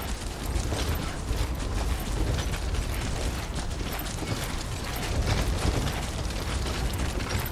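Footsteps crunch on grass at a steady pace.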